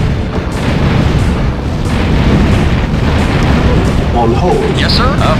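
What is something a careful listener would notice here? Cannons fire and explosions rumble in a battle.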